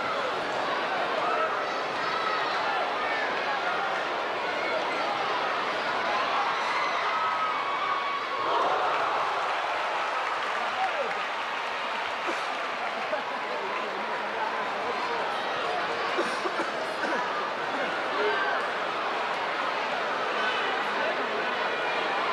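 A large crowd chatters and calls out in an echoing gym.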